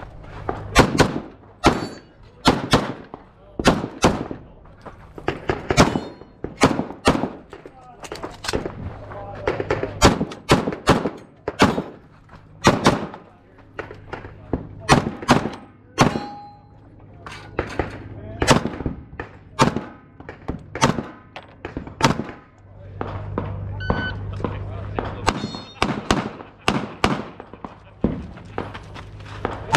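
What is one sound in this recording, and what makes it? Pistol shots crack out loudly in quick bursts outdoors, each with a short echo.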